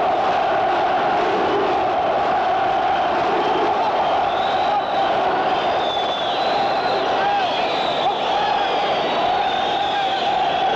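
A large crowd murmurs and shouts steadily in an echoing hall.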